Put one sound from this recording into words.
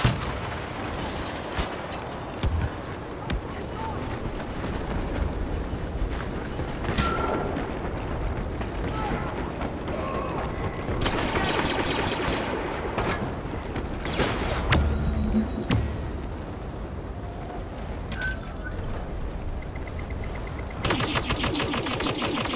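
Footsteps patter on the ground as a soldier runs.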